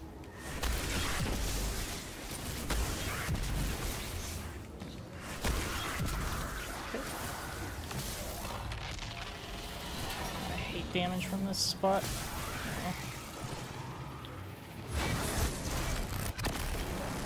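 Gunfire and energy blasts crackle and boom from a video game.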